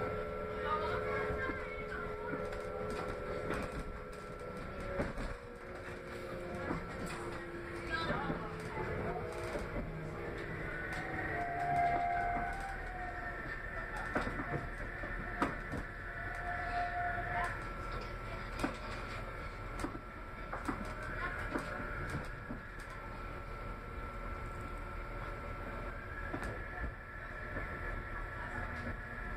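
Fittings in a train carriage rattle and knock now and then.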